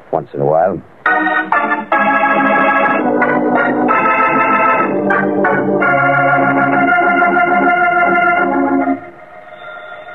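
Music plays tinny through an old radio speaker.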